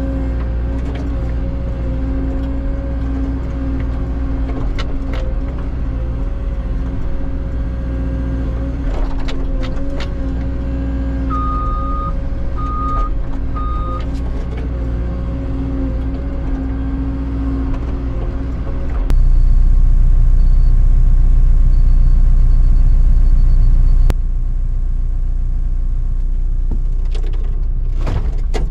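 An excavator engine rumbles steadily from inside the cab.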